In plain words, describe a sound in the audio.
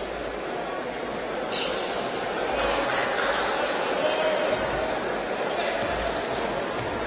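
A crowd murmurs and cheers in an echoing indoor hall.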